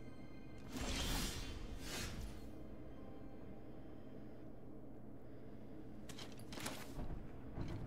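Soft whooshing game effects sound as cards are drawn and played.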